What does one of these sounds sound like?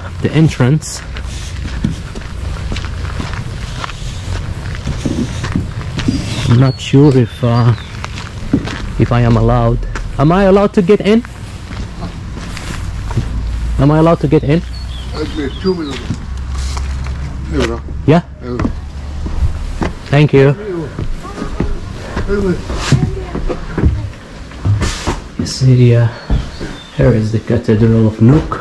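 An elderly man speaks calmly close to a microphone.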